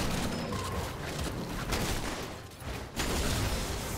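Game spell effects whoosh and clash during a fight.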